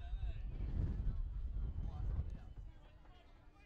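Wind rumbles across an outdoor microphone.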